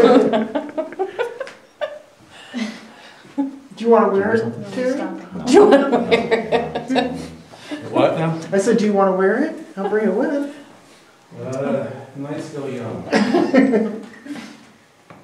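A young woman talks in a hushed, excited voice close by.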